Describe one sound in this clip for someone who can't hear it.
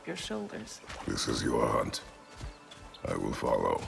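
A man speaks in a deep, low voice.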